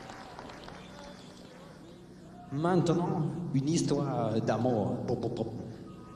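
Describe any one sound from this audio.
A seated musician plays an acoustic guitar.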